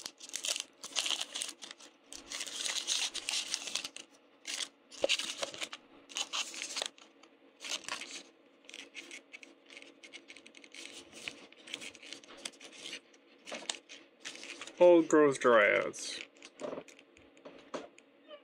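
Trading cards rustle and slide against each other as they are handled.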